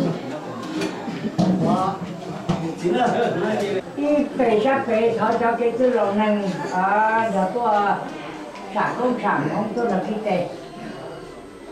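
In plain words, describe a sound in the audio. A man speaks up with animation over the crowd.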